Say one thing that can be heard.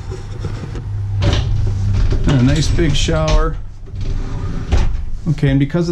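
A glass shower door slides along its track.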